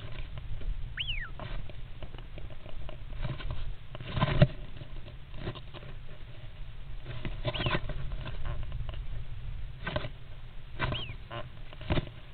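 A bird gives short chirps and squeaks close by.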